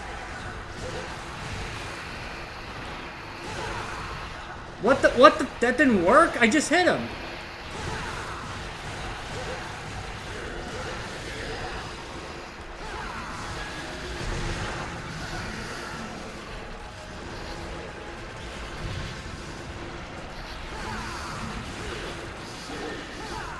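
Sword slashes and magical blasts clash again and again in a game battle.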